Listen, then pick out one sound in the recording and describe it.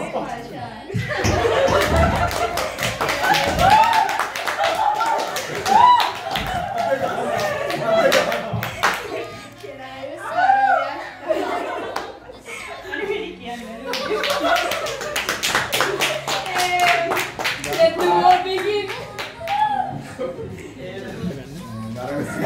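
A young woman laughs and talks cheerfully.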